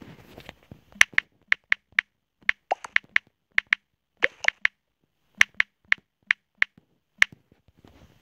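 Phone keyboard taps click in quick succession.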